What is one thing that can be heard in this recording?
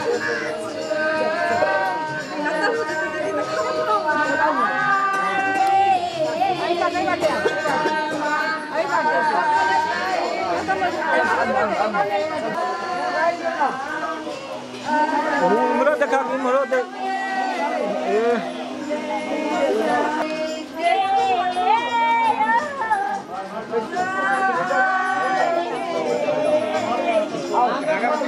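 A group of women sing together loudly and close by.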